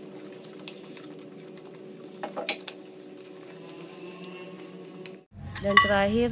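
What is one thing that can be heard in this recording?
A spoon scrapes and stirs a mixture in a metal bowl.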